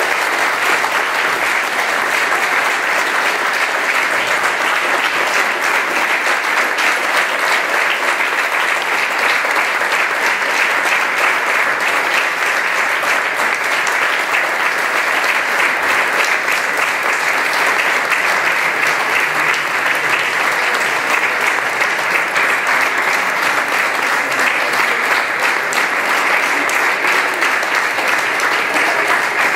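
An audience applauds loudly and steadily in a large room.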